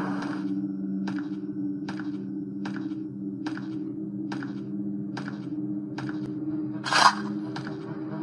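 Footsteps tread at an even, steady pace on a hard floor.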